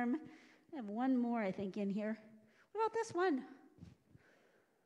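A woman speaks animatedly into a microphone, her voice echoing in a large hall.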